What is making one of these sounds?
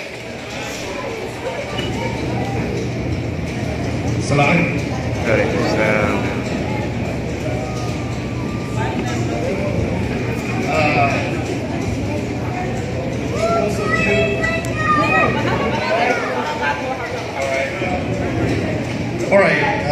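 A man speaks through a microphone into a large echoing hall.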